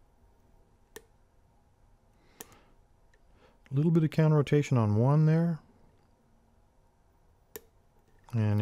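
Metal picks click softly inside a lock.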